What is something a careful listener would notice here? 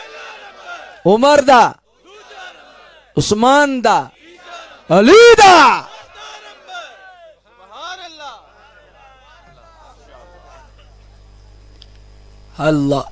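A man preaches passionately into a microphone, his voice rising to loud, drawn-out cries through a loudspeaker.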